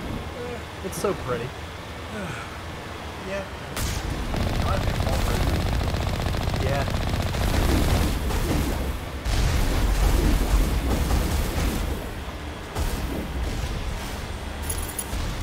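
A vehicle engine rumbles as it drives through water.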